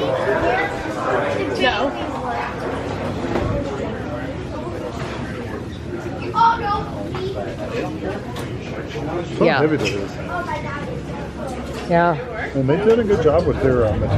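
A crowd of men and women chatters around the listener.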